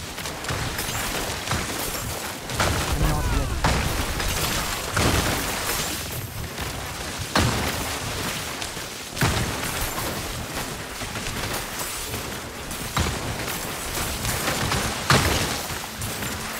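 Lightning strikes crack sharply again and again.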